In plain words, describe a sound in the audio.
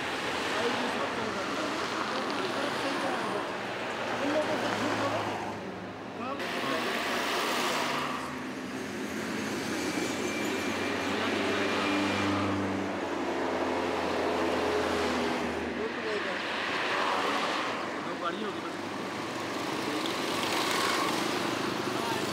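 Cars speed past on a busy road, one after another.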